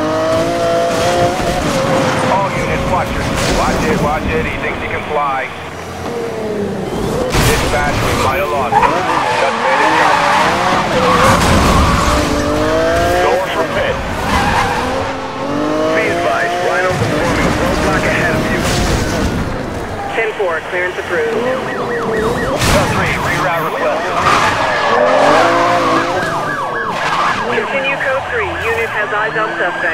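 A car engine roars and revs at high speed.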